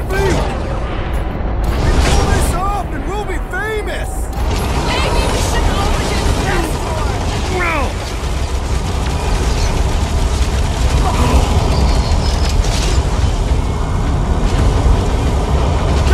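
Energy blasts whoosh and burst loudly.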